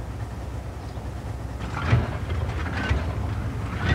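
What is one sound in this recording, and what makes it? Tank tracks clank and rattle over rubble.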